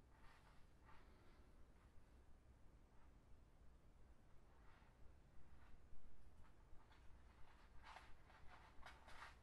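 Plastic strips rustle and crinkle softly between fingers.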